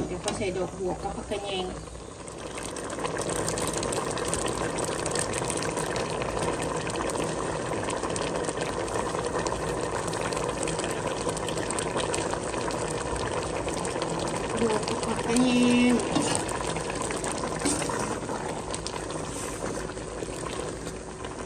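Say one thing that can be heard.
Soup bubbles and simmers in a pot.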